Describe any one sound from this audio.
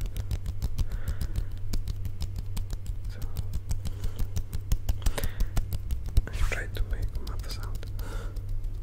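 Hands rub and tap close to a microphone in quick, crisp bursts.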